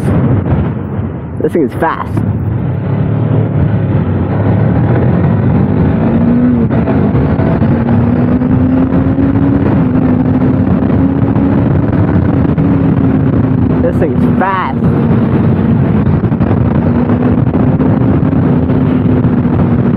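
A motorcycle engine hums steadily up close as the bike rides along.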